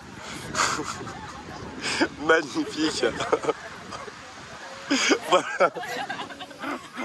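Young women talk and laugh close by, outdoors.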